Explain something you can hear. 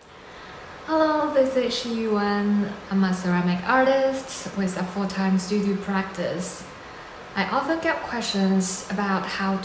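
A young woman talks calmly and close up.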